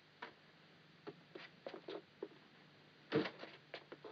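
A man's footsteps walk across a hard floor.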